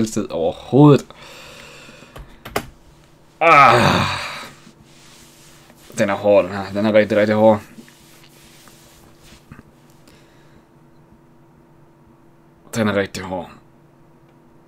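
A man talks casually and close into a microphone, in short bursts.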